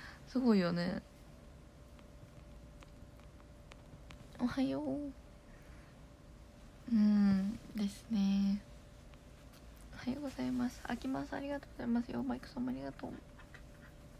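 A young woman talks softly and casually, close to a phone microphone.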